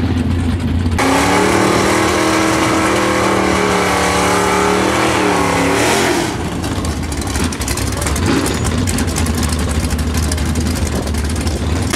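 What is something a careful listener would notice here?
A muscle car engine rumbles and revs loudly.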